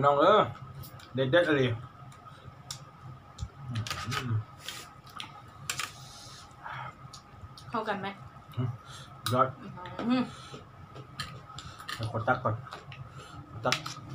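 A man and a woman chew and smack their lips wetly.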